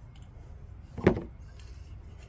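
A metal can knocks down onto a wooden board.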